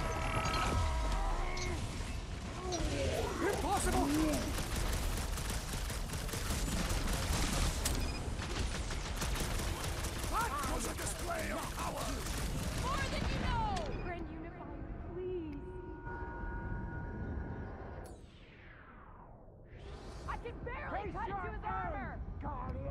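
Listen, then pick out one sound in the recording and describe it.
Energy blasts roar and crackle.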